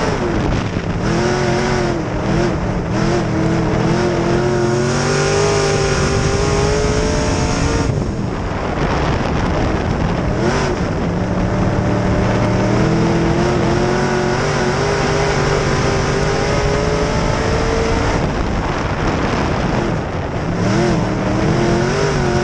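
A race car engine roars loudly close by, revving up and down.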